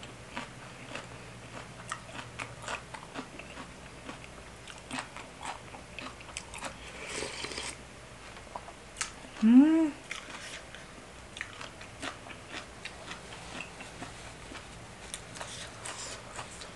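A spoon clinks and scrapes against a dish.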